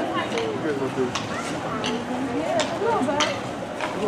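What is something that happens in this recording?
A horse's hooves clop on a paved road.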